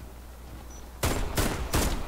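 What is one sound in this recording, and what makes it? A shotgun fires loud, rapid blasts.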